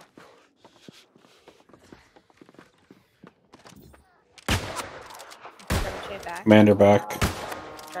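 Rapid gunshots crack and rattle.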